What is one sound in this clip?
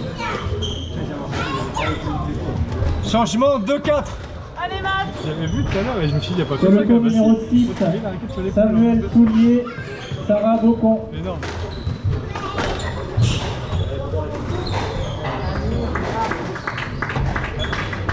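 A squash ball smacks against the walls and rackets, echoing in a large hall.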